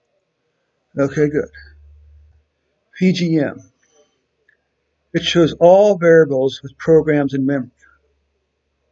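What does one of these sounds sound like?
An older man speaks calmly close to a microphone, explaining in short phrases.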